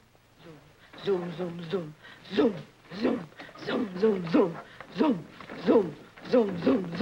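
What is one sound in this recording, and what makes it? An elderly man speaks loudly and with animation.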